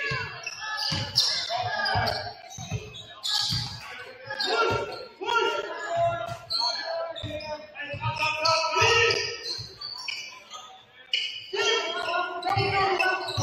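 A basketball bounces on a hardwood floor in a large echoing hall.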